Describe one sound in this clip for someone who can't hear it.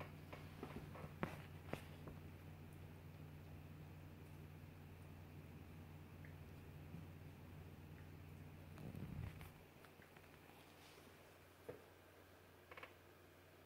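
A small dog thumps about on a soft cushion.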